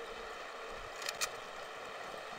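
A gun clicks sharply as it is switched.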